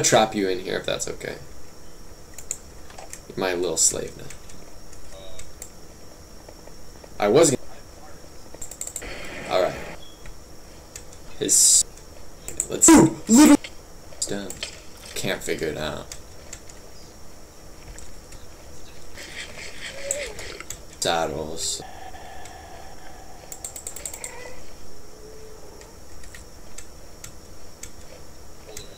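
Keys clack on a keyboard.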